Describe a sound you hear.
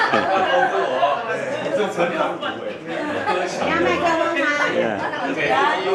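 Several middle-aged men and women talk over one another close by.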